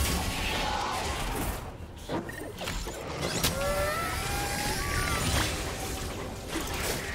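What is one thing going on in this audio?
Game spell effects whoosh, zap and crackle in a fight.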